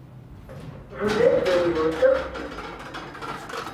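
Elevator doors slide open with a rumble.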